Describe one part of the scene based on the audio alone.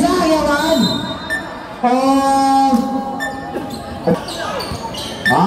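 Spectators shout and cheer loudly nearby, outdoors.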